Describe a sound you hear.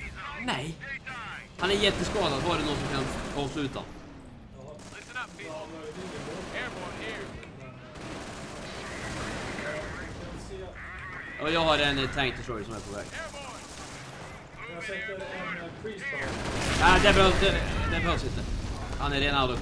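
Explosions boom and guns fire in a battle.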